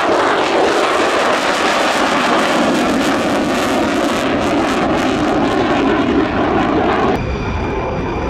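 An F-35 fighter jet roars as it flies past overhead.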